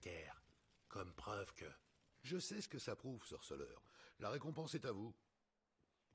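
An older man answers calmly.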